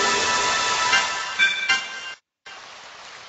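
Game menu chimes beep in quick steps.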